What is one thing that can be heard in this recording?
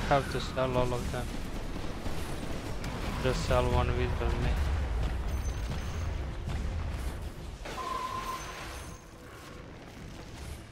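Game battle effects clash and burst.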